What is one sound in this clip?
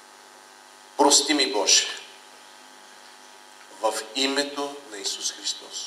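A middle-aged man speaks into a microphone in a calm, measured voice.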